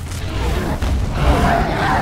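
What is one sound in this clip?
A dragon breathes a roaring burst of fire.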